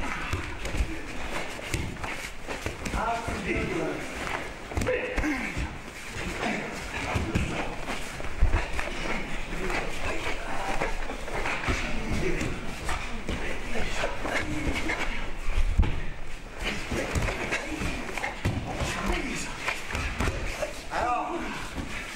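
Bare feet thud and shuffle on padded mats.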